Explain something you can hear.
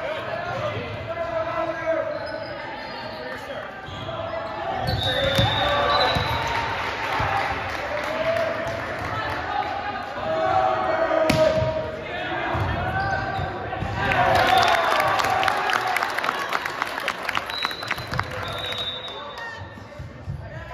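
A crowd of young men shouts and chatters in a large echoing gym.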